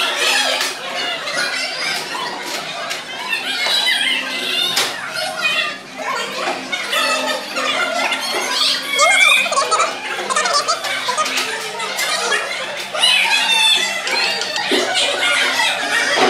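Young children chatter and call out all around in an echoing room.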